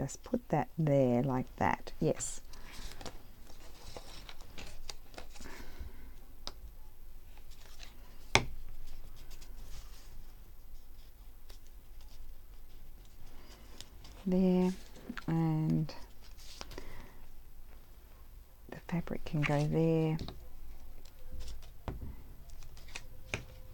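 Paper crinkles and rustles as hands handle scraps.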